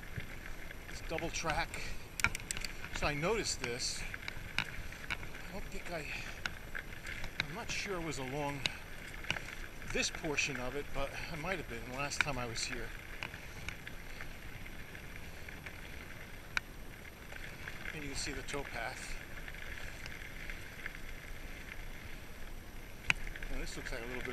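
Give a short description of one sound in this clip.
A bicycle rattles and clicks over bumps.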